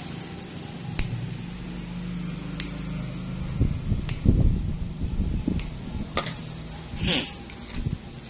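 Nail clippers snip sharply at a toenail.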